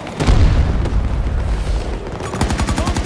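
A large explosion booms nearby.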